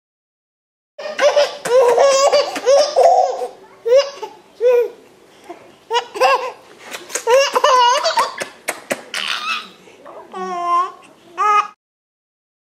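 A baby laughs and coos up close.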